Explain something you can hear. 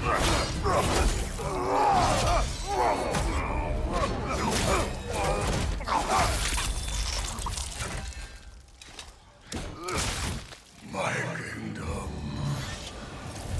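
Heavy blows clang and thud as weapons strike armour.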